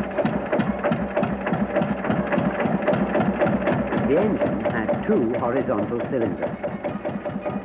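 An old engine chugs with a steady, rapid beat.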